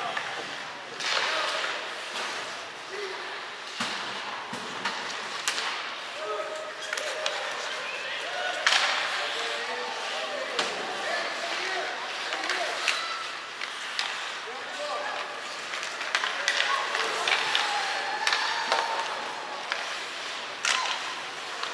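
Sticks clack against the puck and each other.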